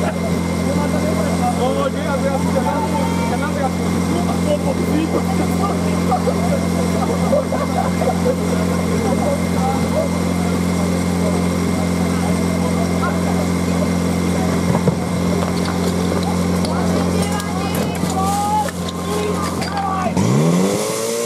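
A pump engine runs with a steady hum.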